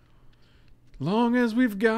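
A man speaks loudly and with animation into a microphone, close by.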